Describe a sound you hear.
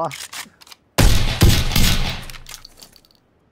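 A gun fires a loud shot that echoes.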